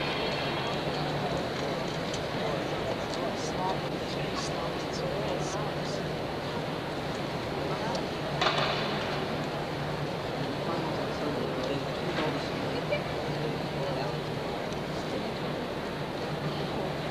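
A large crowd murmurs steadily in an echoing hall.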